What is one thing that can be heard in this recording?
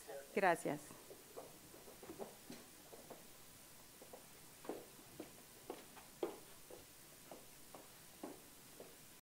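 A woman speaks faintly and calmly through a distant microphone.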